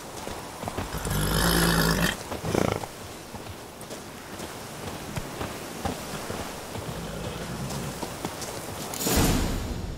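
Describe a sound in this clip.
Footsteps crunch on a dirt path.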